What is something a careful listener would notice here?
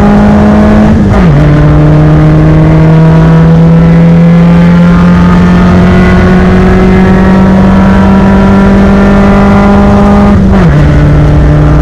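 A car engine's pitch drops sharply as a gear changes.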